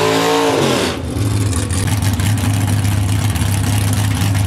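A muscle car engine idles with a deep, steady rumble.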